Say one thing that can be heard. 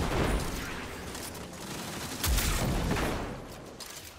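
A heavy melee blow lands with a thud.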